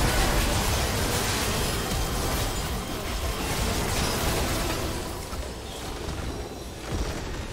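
Spell effects crackle and blast in a busy fight.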